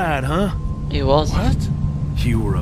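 A man answers briefly in a deep voice.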